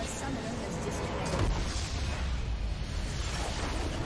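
A game battle crackles with magic blasts and impacts.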